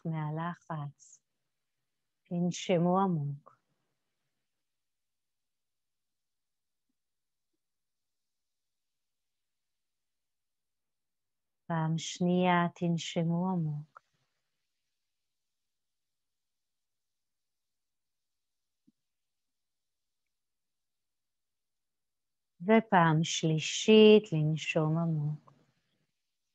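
A woman speaks softly and calmly in short phrases, with long silences between.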